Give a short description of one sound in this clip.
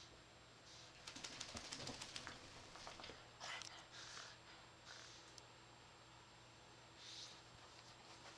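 A small dog's paws patter and scratch on a bedspread.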